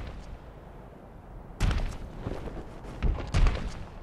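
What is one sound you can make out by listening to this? Heavy bare feet thud on stone steps.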